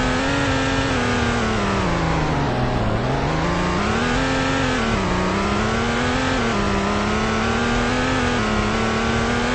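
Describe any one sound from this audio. A car engine hums loudly and steadily, its pitch dropping and climbing again as the gears change.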